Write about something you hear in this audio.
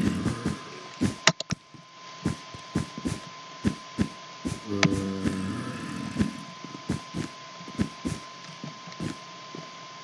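A block breaks with a short crumbling sound.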